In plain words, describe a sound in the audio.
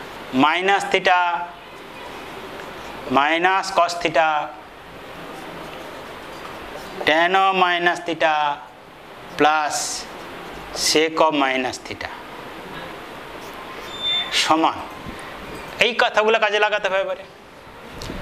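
A man speaks calmly in short phrases, as if explaining, close by.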